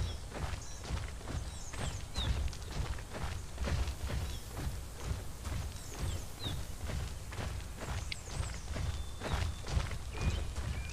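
Heavy footsteps thud quickly and steadily on sand.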